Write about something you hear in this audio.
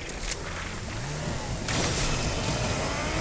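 A game car engine revs up and hums.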